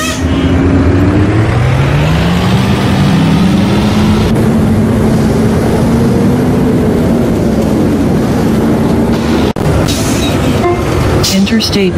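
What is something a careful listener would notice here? A bus engine revs up as the bus pulls away.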